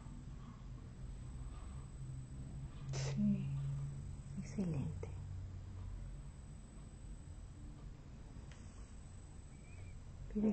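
A middle-aged woman snores softly close by.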